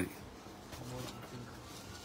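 A sheet of paper rustles as it is lifted.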